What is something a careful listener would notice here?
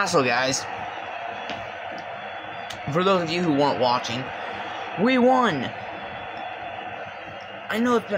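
A crowd cheers steadily, heard through a loudspeaker.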